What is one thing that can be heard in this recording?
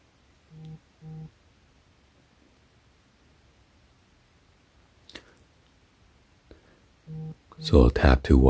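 A phone beeps with short electronic tones.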